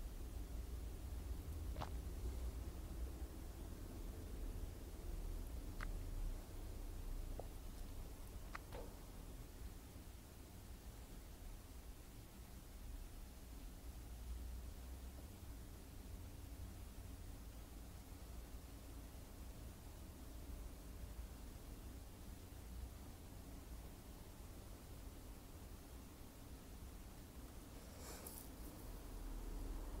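A young woman whispers softly, close to a microphone.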